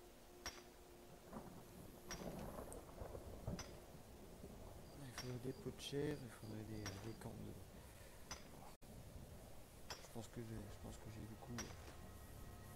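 A pickaxe strikes rock with sharp metallic clinks at a steady pace.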